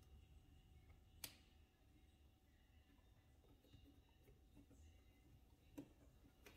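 Fingers fiddle with small wires, making faint clicks and rustles.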